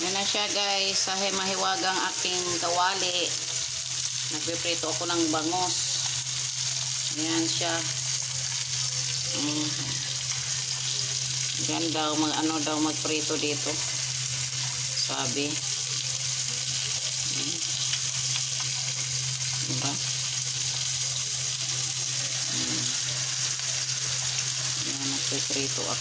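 Fish sizzles softly in a hot frying pan.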